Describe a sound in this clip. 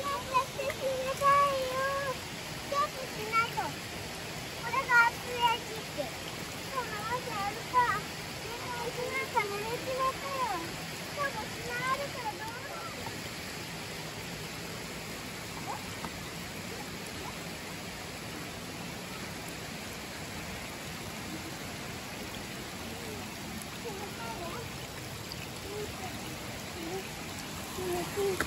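A stream flows and babbles steadily outdoors.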